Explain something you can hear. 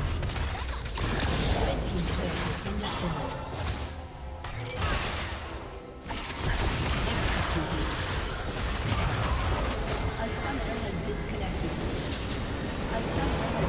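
Spells and attacks crash and blast during a game battle.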